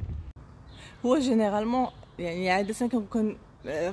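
A young woman talks calmly and close up.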